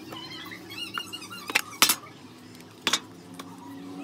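A plastic cup knocks on a hard surface.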